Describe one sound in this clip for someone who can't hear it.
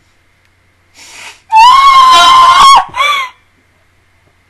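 A young woman screams loudly into a close microphone.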